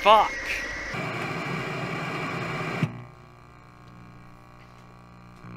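Television static hisses steadily.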